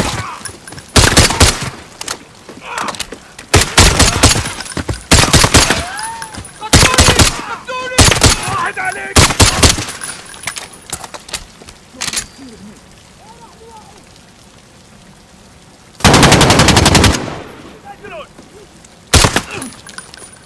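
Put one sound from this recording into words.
Rifle shots ring out in loud, rapid bursts.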